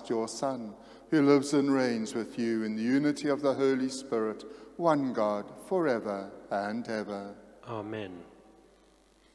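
A man sings a chant through a microphone in a reverberant hall.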